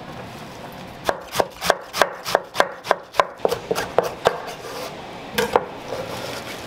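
A knife chops quickly through cabbage on a wooden board.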